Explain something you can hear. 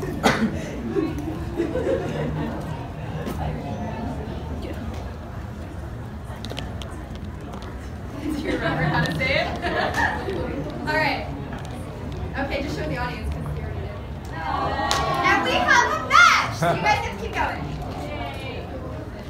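A crowd of people chatter and murmur nearby.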